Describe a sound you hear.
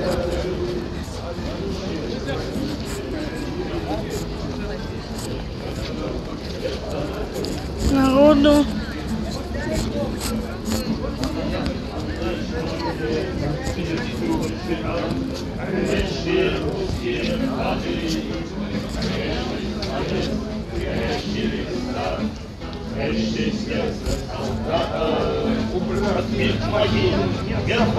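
A crowd of men and women murmurs and talks nearby, outdoors.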